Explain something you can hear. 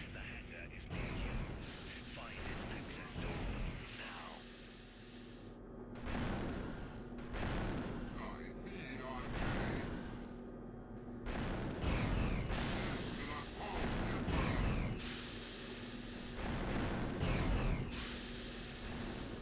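An energy gun fires in sharp, crackling bursts.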